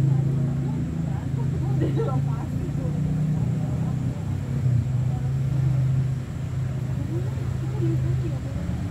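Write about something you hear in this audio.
Men talk quietly nearby, outdoors.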